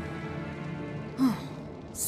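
A fire crackles in a brazier.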